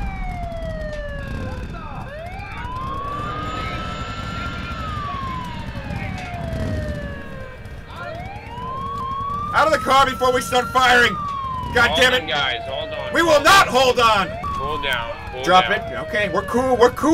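A siren wails up and down, close by.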